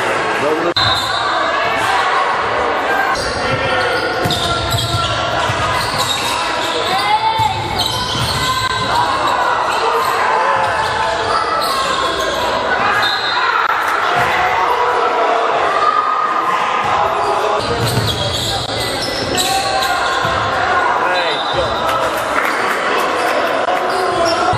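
Young men shout and call out to each other, echoing in a large hall.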